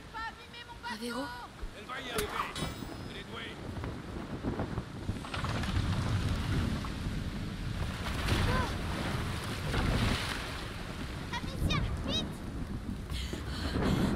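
Storm wind howls steadily outdoors.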